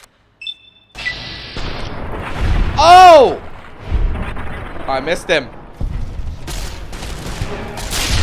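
A gun fires with heavy blasts.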